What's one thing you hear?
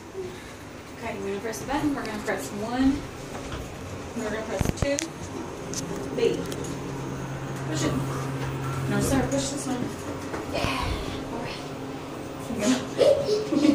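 Young children chatter and babble close by.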